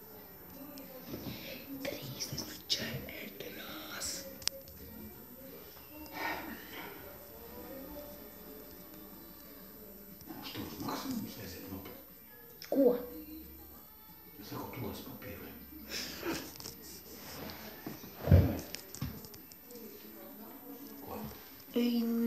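A young boy talks and laughs close to a microphone.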